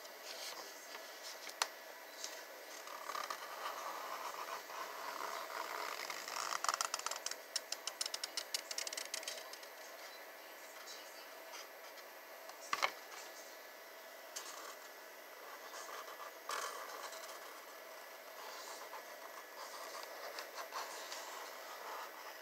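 A marker squeaks and scratches on cardboard.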